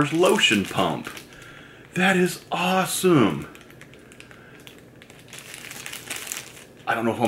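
A plastic bag crinkles in a man's hands.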